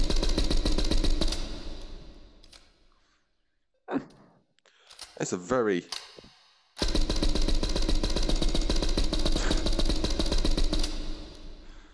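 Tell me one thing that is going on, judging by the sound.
A rifle fires rapid automatic bursts that echo and fade.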